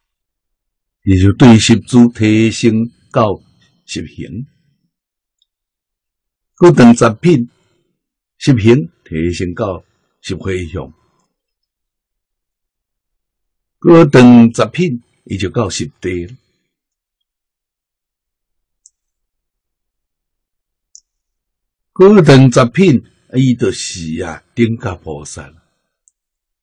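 An elderly man speaks calmly into a close microphone, in short phrases with pauses.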